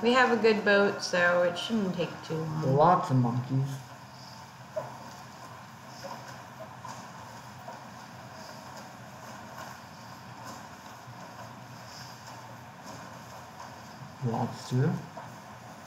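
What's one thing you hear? Gentle waves lap and wash steadily.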